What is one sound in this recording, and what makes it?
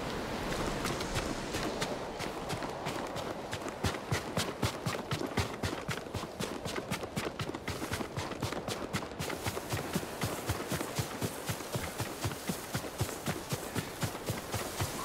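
Quick footsteps run over sand and grass.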